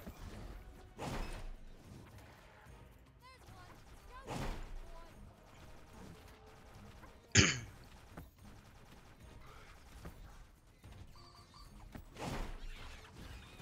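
Magic blasts whoosh and boom in short bursts.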